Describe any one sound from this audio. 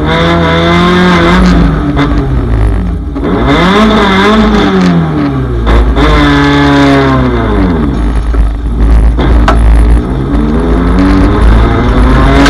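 A race car engine roars loudly, revving up and down as the gears change.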